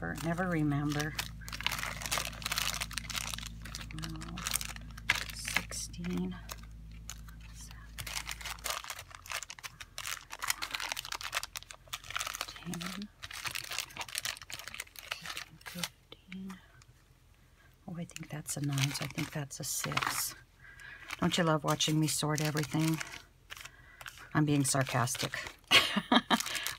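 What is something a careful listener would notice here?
Plastic bags crinkle and rustle as hands handle them.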